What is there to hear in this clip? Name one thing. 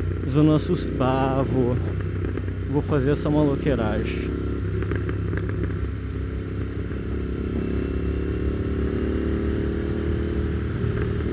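Wind rushes past a moving motorcycle rider.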